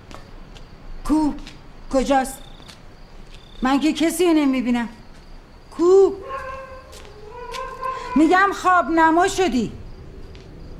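An elderly woman calls out loudly and anxiously.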